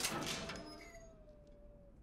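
A metal gate creaks as it swings open.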